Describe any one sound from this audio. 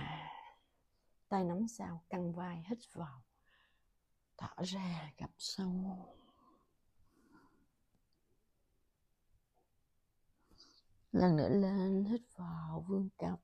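A young woman speaks calmly and gives instructions.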